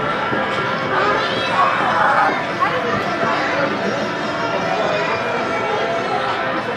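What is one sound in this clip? A crowd of children chatters and shouts nearby, outdoors.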